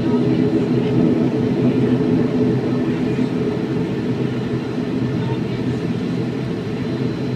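A propeller engine drones loudly and steadily close by.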